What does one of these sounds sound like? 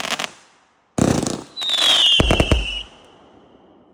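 A firework shell launches with a whistling thump.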